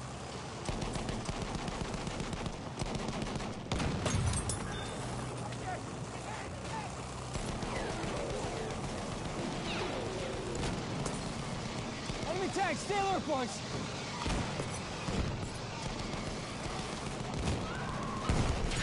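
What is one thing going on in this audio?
Gunfire and explosions crack and boom.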